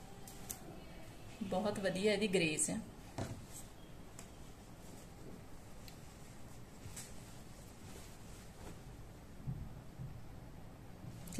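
Fabric rustles softly as hands handle it.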